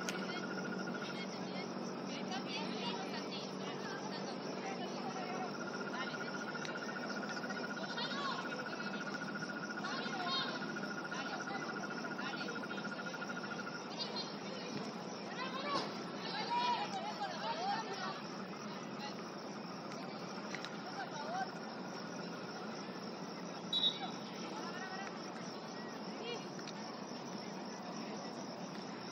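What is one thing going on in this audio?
Young women shout and call out to each other across an outdoor pitch.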